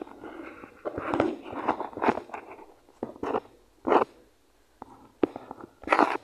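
Short game sound effects thud as blocks are placed and struck.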